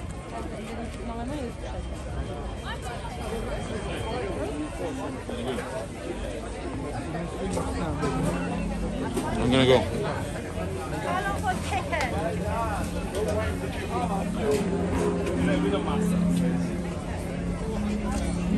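A crowd of people chatter all around outdoors.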